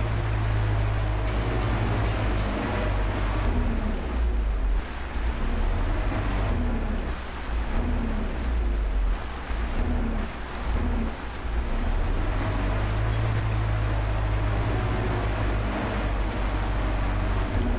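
A truck cab rattles and clanks over rough ground.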